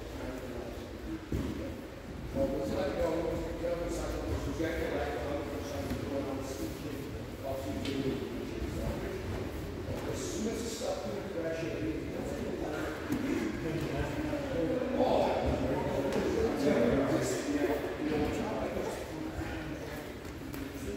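Bodies shuffle and thump on a padded mat.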